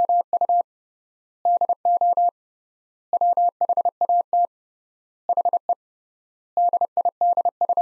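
A telegraph key taps out bursts of steady, high Morse code beeps.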